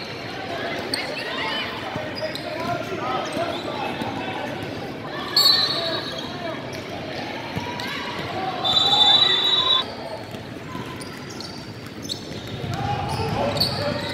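Young men talk and call out in a large echoing gym.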